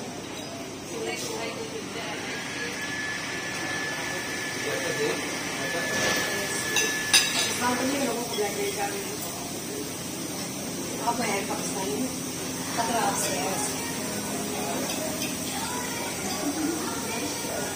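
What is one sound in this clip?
Cutlery clinks and scrapes on plates.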